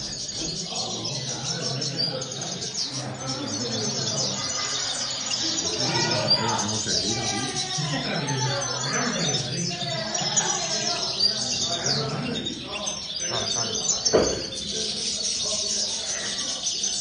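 An elderly man talks quietly nearby.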